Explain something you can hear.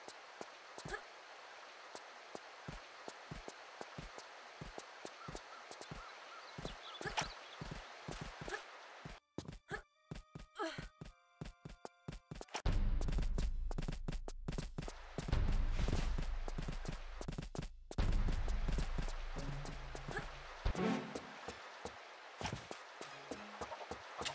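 Footsteps patter quickly as a figure runs.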